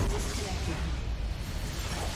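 Magic blasts whoosh and crackle in a game battle.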